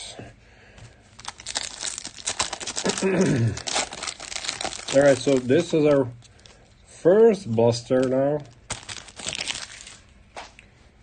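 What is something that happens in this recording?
A foil card pack crinkles and tears as it is opened.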